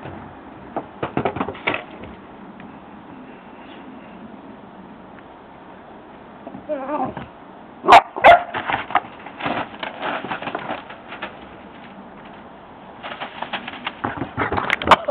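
A puppy's paws patter and scratch on wooden decking.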